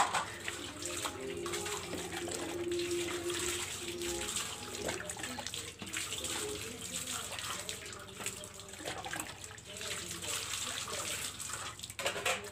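Water splashes and pours onto a wet floor.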